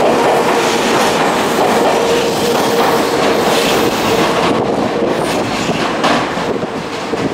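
An electric train approaches on the tracks.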